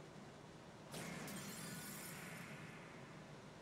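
An electronic whoosh and rumble plays as an attack strikes.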